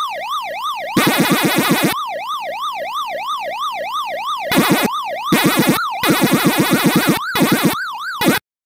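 A rapid electronic munching chirps in quick bursts.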